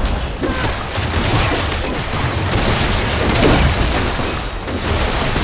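Fantasy combat effects crackle and blast in quick succession.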